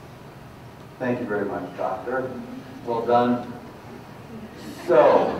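A man speaks through a microphone to an audience.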